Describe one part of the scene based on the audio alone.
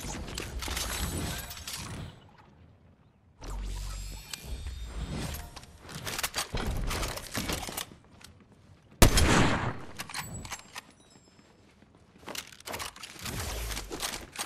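Weapons click and rattle as they are swapped.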